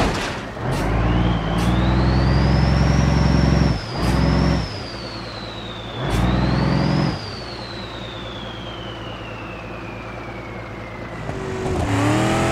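A heavy truck engine revs and rumbles.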